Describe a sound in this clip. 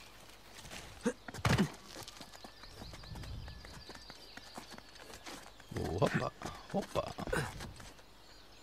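Footsteps thud and rustle through leafy undergrowth.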